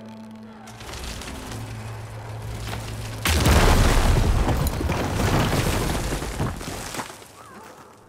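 Rocks crumble and rumble loudly as debris falls.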